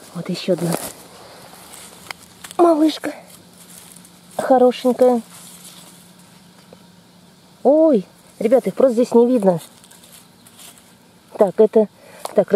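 A knife cuts through a mushroom stem.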